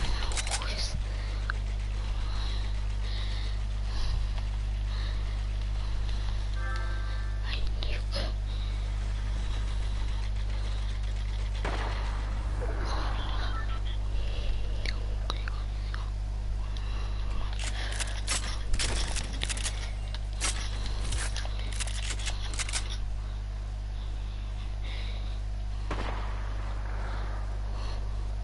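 Wooden walls snap into place with quick clacks and thuds in a video game.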